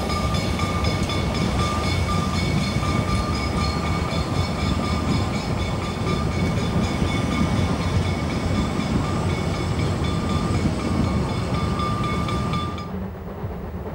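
A steam train rumbles slowly past close by.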